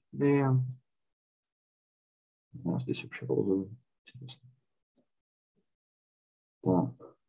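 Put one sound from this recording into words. A young man speaks calmly over an online call, in short phrases with pauses.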